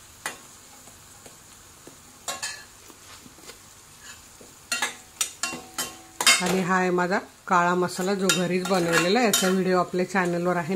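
A metal spatula clinks and scrapes against a metal pan.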